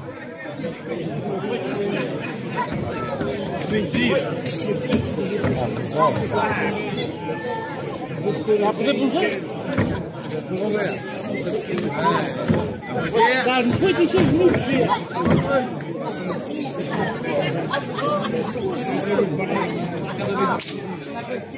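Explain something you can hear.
A large outdoor crowd chatters and shouts with excitement nearby.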